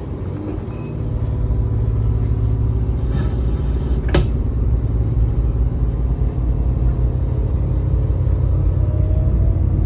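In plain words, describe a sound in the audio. A train pulls away and its wheels roll and clack over the rails.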